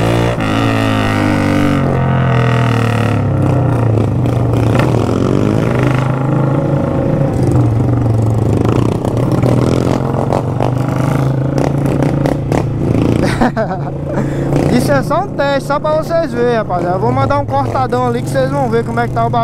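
A motorcycle engine hums steadily up close as the bike rides along.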